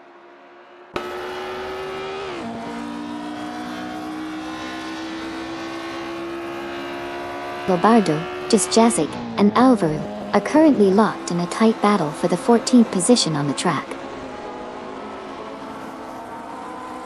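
A racing car engine drones steadily close by.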